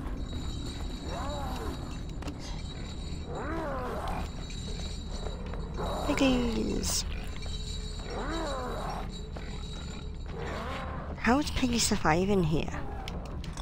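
Pigs squeal and grunt nearby.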